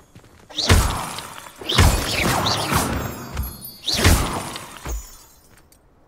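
Magic spells crackle and whoosh in loud bursts.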